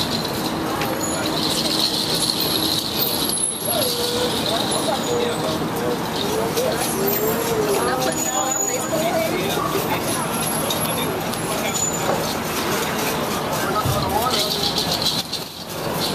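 A busy city street hums with a steady murmur of traffic and passers-by.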